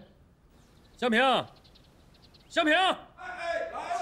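A man calls out loudly from a distance, repeating a name.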